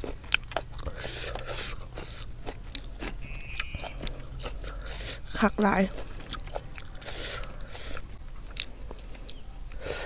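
Fingers squelch through wet food.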